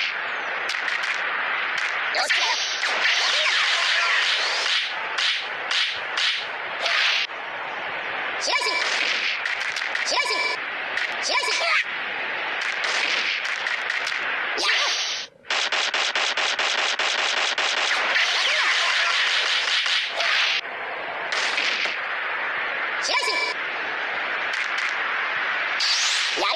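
Sword slashes and energy blasts whoosh and crash in a fast fighting game.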